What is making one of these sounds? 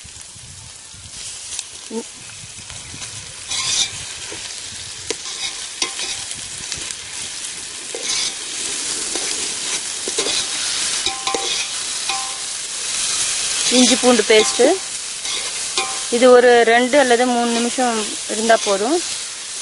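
A metal spoon scrapes and clanks against a pot.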